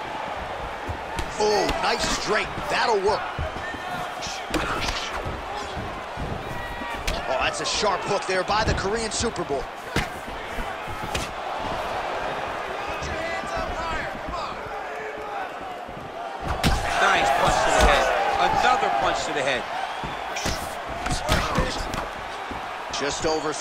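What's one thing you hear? Punches thud against bodies in quick bursts.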